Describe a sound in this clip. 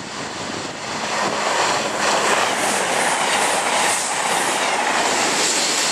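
A fast passenger train rushes past close by with a loud roar.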